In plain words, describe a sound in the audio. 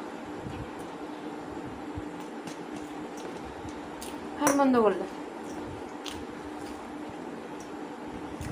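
A woman chews and smacks her lips close by.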